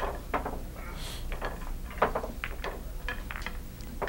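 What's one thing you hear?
Billiard balls clack together on the table.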